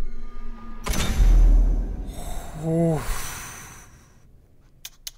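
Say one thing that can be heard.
A game plays a whooshing chime.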